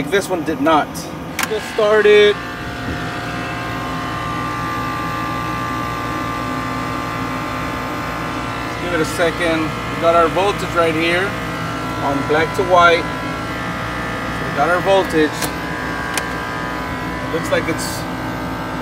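Electrical equipment hums steadily.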